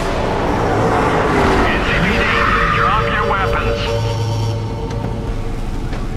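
A car engine roars as it drives up close.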